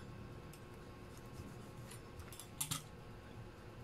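Hands tap and handle soft pieces of dough.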